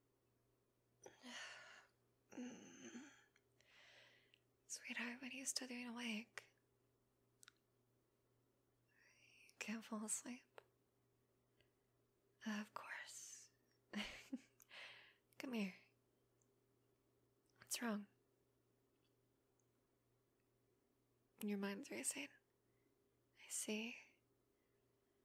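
A young woman speaks cheerfully and close by, in short bursts with pauses.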